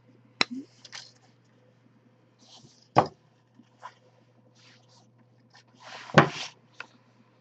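Plastic pieces click and snap as they are handled and trimmed.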